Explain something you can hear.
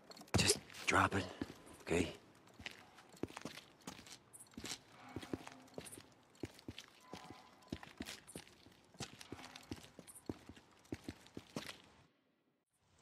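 Footsteps crunch over debris on a hard floor.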